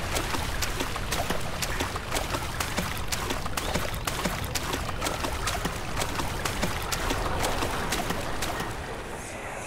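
Footsteps splash quickly and steadily through shallow water.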